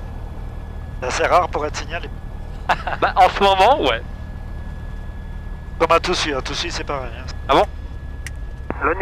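A younger man talks with animation through a headset intercom.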